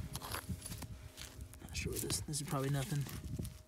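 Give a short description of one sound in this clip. A gloved hand scrapes and crumbles dry soil close by.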